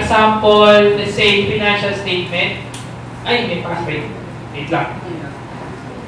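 A man speaks calmly into a microphone over loudspeakers in an echoing hall.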